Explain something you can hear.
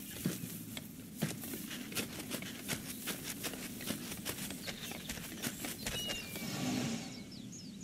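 Footsteps patter quickly on the ground outdoors.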